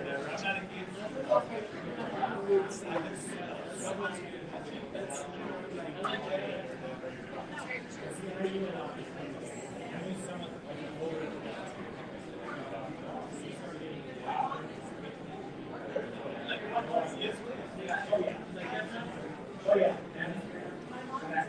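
Men and women chat nearby with a steady murmur of voices.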